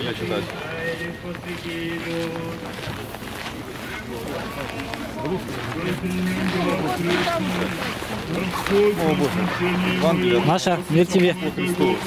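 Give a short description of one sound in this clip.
A man talks close by in a calm voice.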